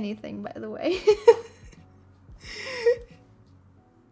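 A young woman laughs, close to a microphone.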